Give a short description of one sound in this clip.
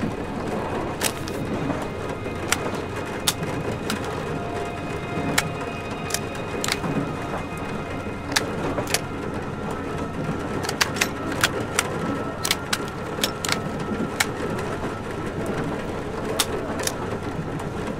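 Short sharp clicks sound as menu options change.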